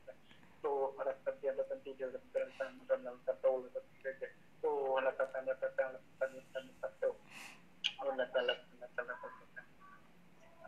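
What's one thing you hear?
A young man sings through a phone speaker.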